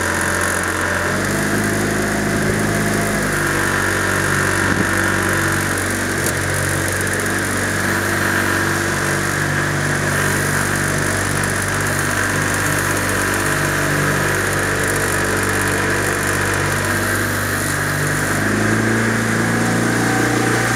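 A boat motor hums steadily, its pitch shifting now and then.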